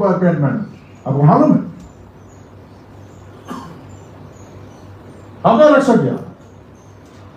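A man speaks forcefully into a microphone, with long pauses between phrases.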